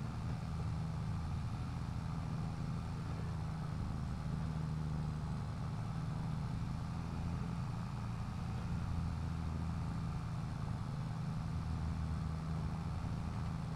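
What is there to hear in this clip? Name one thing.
A tractor engine hums low and steady.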